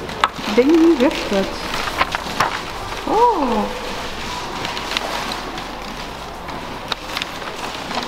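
Paper pages rustle and crinkle close by.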